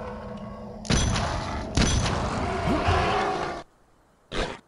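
An explosion bursts with a loud roar and fades.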